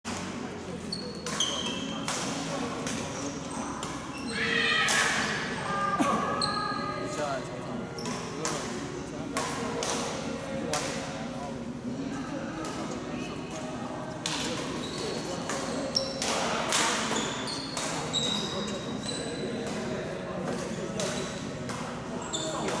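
Rackets smack shuttlecocks in quick exchanges in a large echoing hall.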